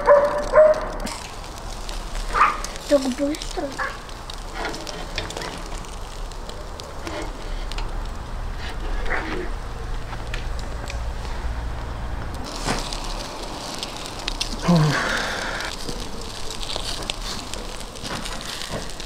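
Meat sizzles and hisses over hot coals.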